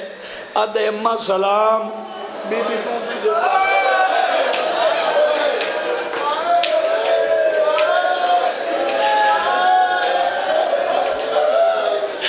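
A man chants loudly and with emotion into a microphone, heard through loudspeakers.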